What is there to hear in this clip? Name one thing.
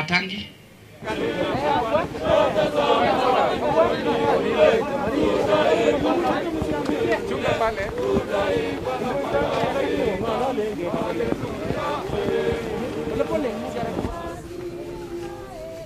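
A crowd of men and women sings a slow hymn together outdoors.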